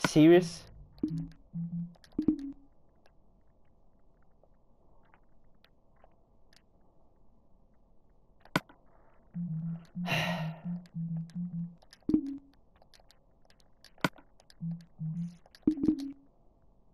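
Short menu clicks blip in quick succession.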